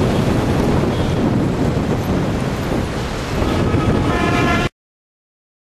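Car engines hum as traffic passes on a street.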